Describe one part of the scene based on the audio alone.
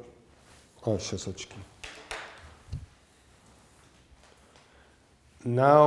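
A man reads aloud calmly, close by.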